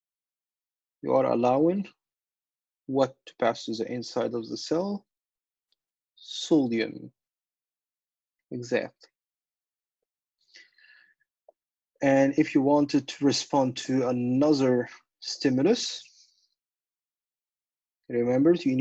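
A man explains calmly through a microphone, with pauses.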